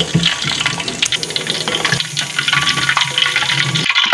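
A metal strainer clinks against a pan.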